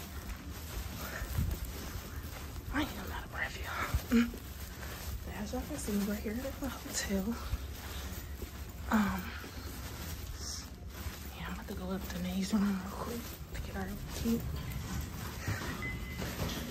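Footsteps thud softly on carpet at a steady walking pace.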